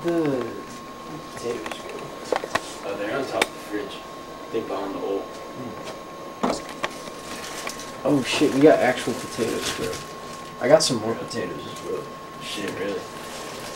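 Plastic food packaging crinkles as it is handled.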